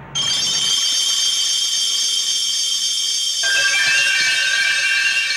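A high, shimmering magical tone rings steadily and shifts in pitch partway through.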